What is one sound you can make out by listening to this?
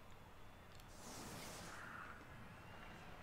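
A magical whoosh swells up and fades away.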